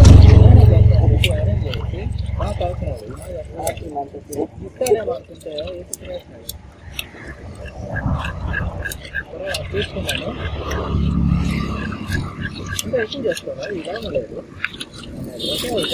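A fish scaler scrapes scales off a fish with quick rasping strokes.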